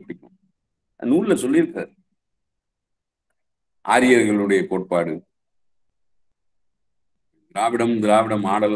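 A middle-aged man speaks calmly in short phrases into a microphone on an online call.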